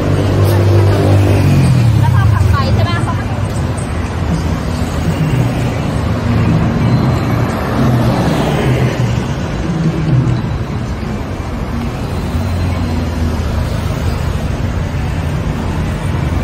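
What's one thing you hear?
City traffic rumbles steadily along a busy street.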